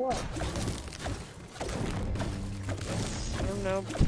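A pickaxe strikes rock again and again.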